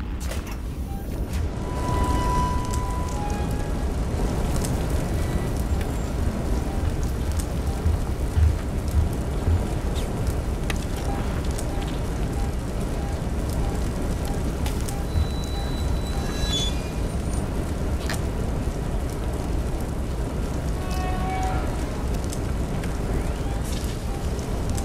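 A handheld motion tracker beeps in short, regular pings.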